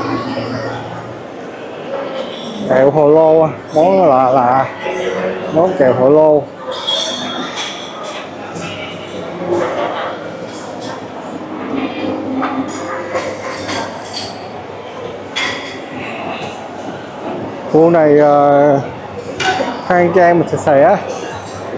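Many people chatter at a low murmur in a large echoing hall.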